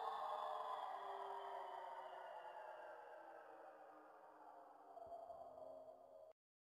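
Dance music plays and slowly fades, then cuts off.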